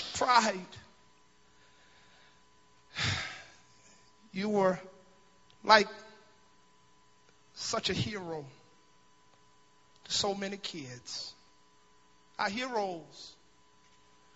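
A man preaches with feeling through a microphone and loudspeakers, in short bursts with pauses, in a large echoing hall.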